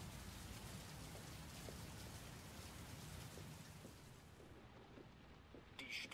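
Footsteps tap on a wet floor.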